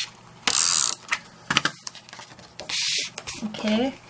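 Paper slides and rustles against a tabletop.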